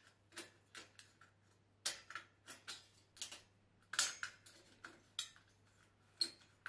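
Tin snips cut through thin metal trim in short, sharp snips.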